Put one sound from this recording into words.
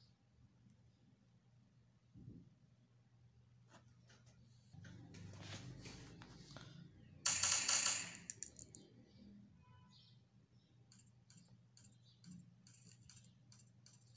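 Fingers tap on a phone's touch surface.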